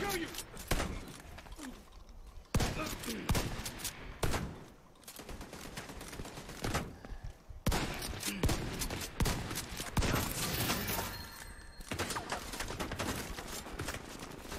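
Gunfire rattles in sharp bursts.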